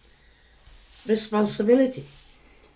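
A middle-aged woman speaks briefly and calmly, close by.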